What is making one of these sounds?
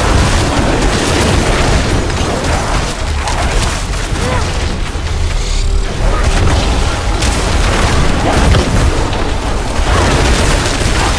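Magic spells crackle and explode in a fast battle.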